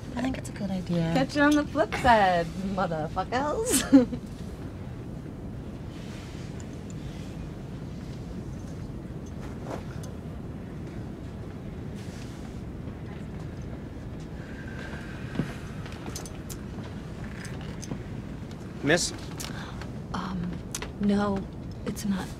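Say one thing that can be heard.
An aircraft cabin hums steadily.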